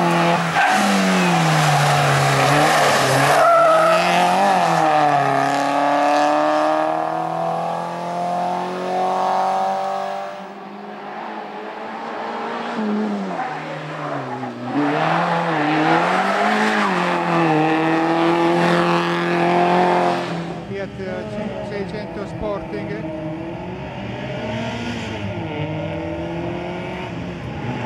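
A rally car engine revs hard and roars past up close.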